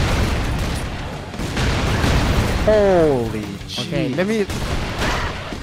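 Explosions and gunfire crackle from a video game.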